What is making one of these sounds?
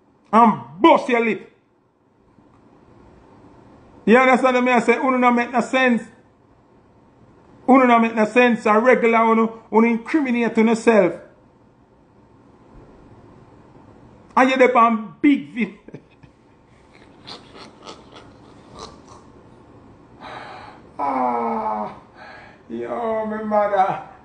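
A man speaks with animation close to a phone microphone.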